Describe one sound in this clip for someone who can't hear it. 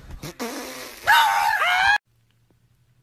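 A dog howls loudly.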